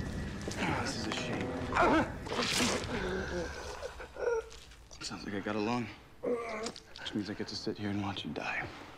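A man speaks tensely, heard from a recorded drama playing back.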